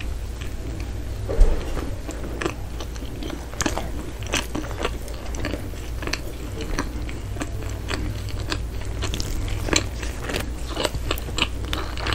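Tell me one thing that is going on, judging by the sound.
A woman chews and smacks her lips softly, very close to a microphone.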